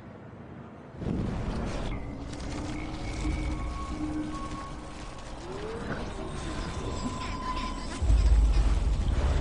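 A rewinding effect whooshes and warbles.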